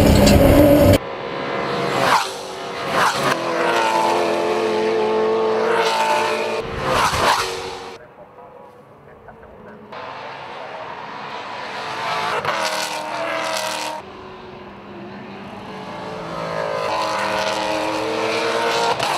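Race car engines roar past outdoors.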